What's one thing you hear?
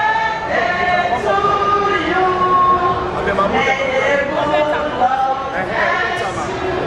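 A middle-aged woman sings close by in a long, wavering melody.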